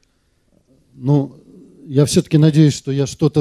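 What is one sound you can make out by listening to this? A man speaks into a microphone over loudspeakers in a large hall.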